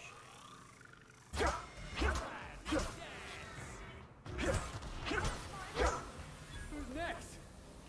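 A blade slashes through metal.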